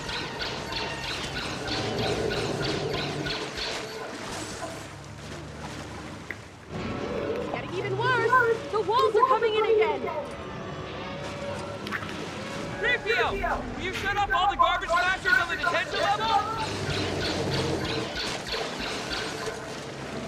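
A blaster fires rapid bursts of shots.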